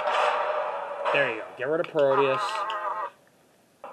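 A heavy metal door slides shut with a clang.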